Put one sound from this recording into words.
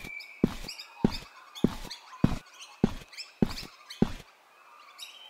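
Footsteps thump steadily on grass.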